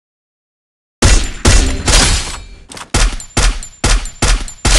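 A rifle fires loud shots in quick succession.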